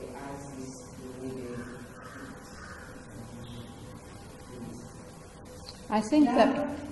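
An elderly woman reads aloud calmly and softly, close to a microphone.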